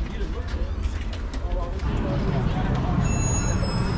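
A heavy glass door is pulled open.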